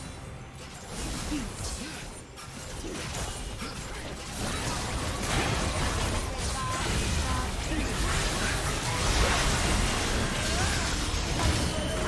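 Spell blasts and hit effects crackle and bang in a fast fight.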